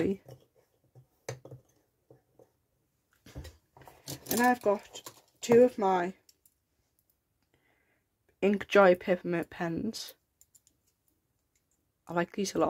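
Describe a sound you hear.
Pens and pencils click and clatter softly as they are picked up and handled.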